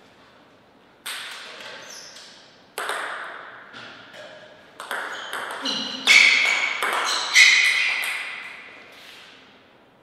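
A table tennis ball clicks sharply back and forth off paddles and the table.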